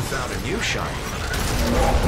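Electric bolts zap and crackle.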